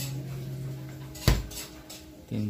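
A refrigerator door thuds shut.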